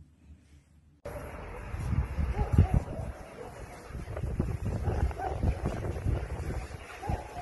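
Several dogs bark and yelp outdoors.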